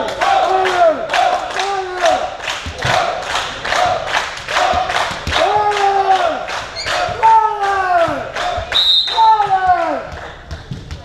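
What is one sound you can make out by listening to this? Young men clap rhythmically.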